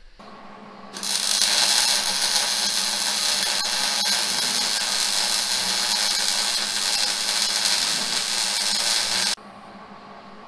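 An electric welder crackles and hisses steadily up close.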